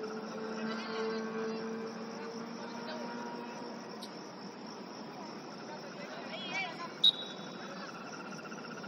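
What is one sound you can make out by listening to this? Young players call out to each other in the distance outdoors.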